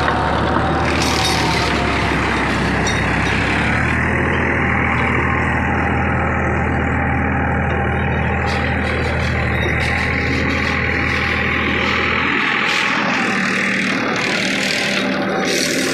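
A rotary tiller churns through soil.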